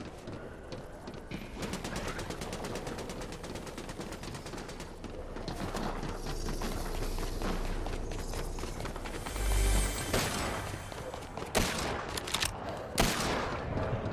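Footsteps clatter quickly on metal stairs and floors.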